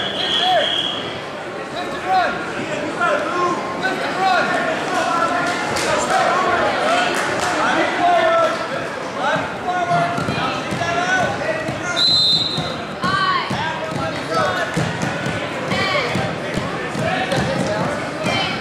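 A crowd of spectators shouts and cheers loudly in an echoing gym.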